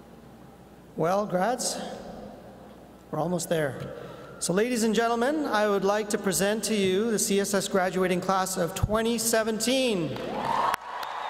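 A man speaks calmly into a microphone over loudspeakers in a large echoing hall.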